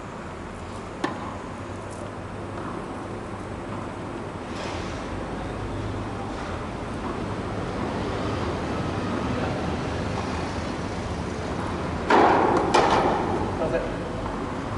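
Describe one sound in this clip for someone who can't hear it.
A tennis ball is struck with a racket in a large echoing indoor hall.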